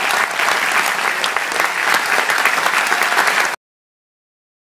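A large audience claps and cheers loudly in a hall.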